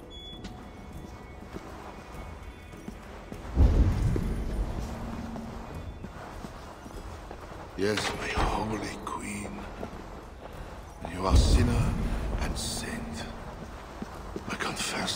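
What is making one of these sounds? Soft footsteps shuffle slowly on a stone floor.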